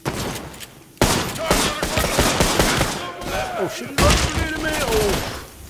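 A pistol fires a string of sharp shots.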